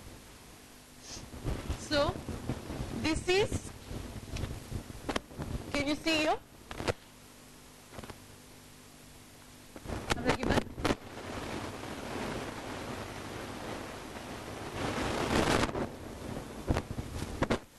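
A woman speaks with animation, nearby.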